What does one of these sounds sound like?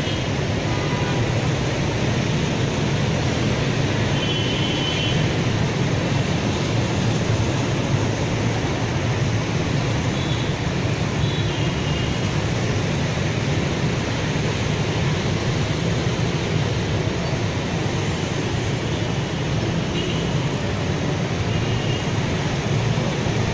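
Busy traffic of motorbikes and cars rumbles steadily along a road.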